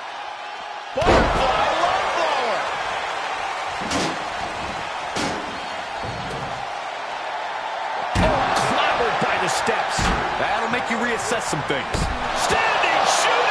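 Heavy bodies thud and slam onto a wrestling mat.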